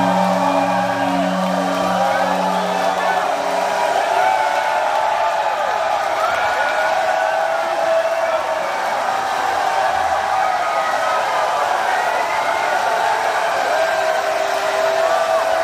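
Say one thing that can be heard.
A man sings loudly through loudspeakers in a large hall.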